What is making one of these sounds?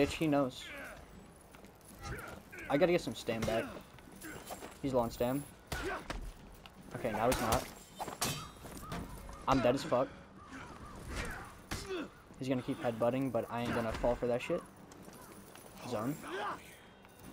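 Swords clash and clang in combat.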